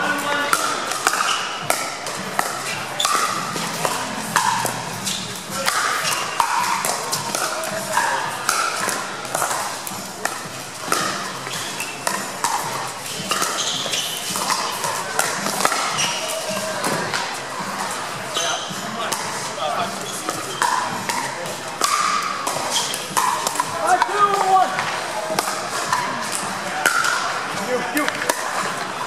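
Paddles hit a plastic ball with sharp pops in a large echoing hall.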